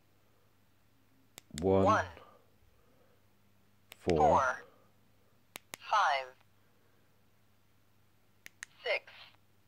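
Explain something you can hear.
Buttons on a handheld radio click as a thumb presses them.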